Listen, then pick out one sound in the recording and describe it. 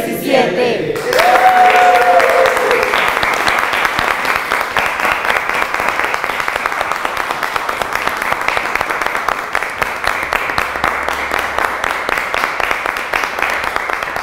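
A group of people clap their hands steadily.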